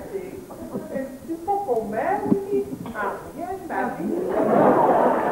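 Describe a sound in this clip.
A woman sings on a stage.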